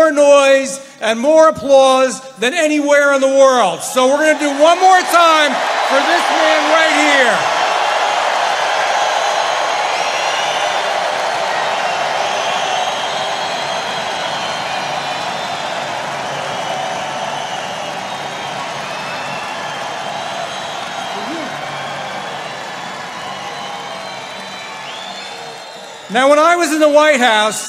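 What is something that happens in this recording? A man speaks forcefully through loudspeakers in a large echoing hall.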